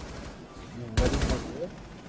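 A rifle fires a quick burst of shots.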